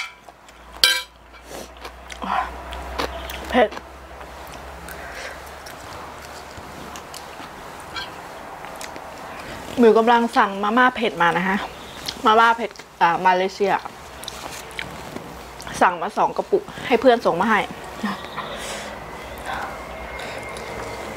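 A young woman chews and smacks her lips close to the microphone.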